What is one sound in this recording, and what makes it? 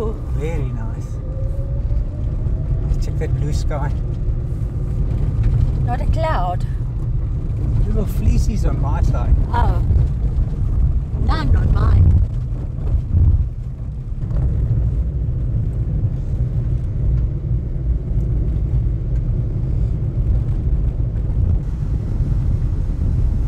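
A vehicle rumbles steadily along a gravel road.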